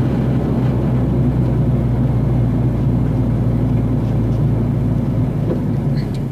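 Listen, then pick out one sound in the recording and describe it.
A vehicle engine hums steadily while driving along a street.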